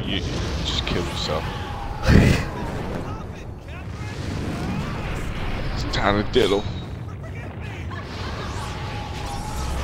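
A woman laughs wildly.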